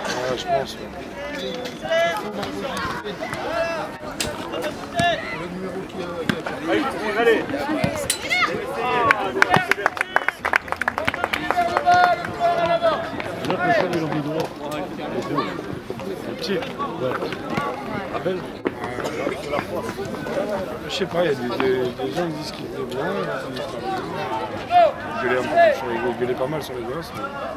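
Young girls shout and call out to each other across an open field outdoors.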